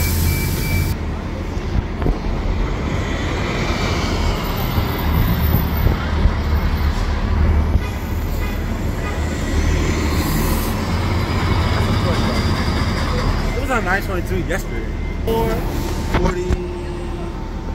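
Traffic hums in the street outdoors.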